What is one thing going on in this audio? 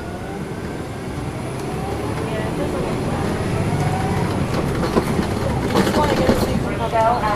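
The bus rolls along the road with a low, steady road noise.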